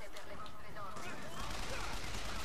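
A gun fires in bursts.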